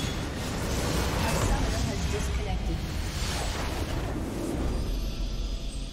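A video game structure explodes with a deep boom.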